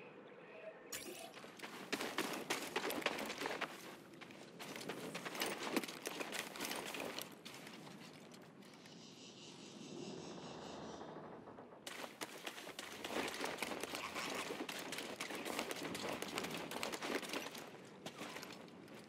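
Quick footsteps rustle through tall grass.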